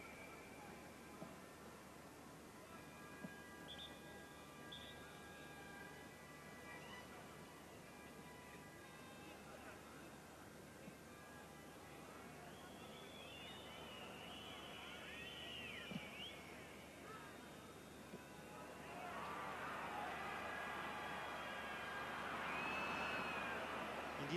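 A large stadium crowd murmurs and whistles throughout.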